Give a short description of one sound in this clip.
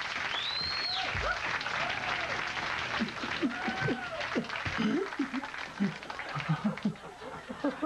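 A man whimpers and moans close by.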